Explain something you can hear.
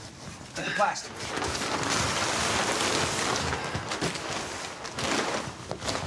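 A plastic sheet rustles and crinkles loudly.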